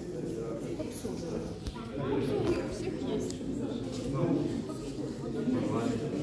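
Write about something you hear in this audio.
A man and a woman talk with each other nearby.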